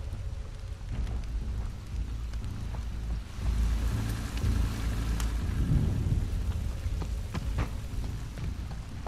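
A man speaks quietly into a close microphone.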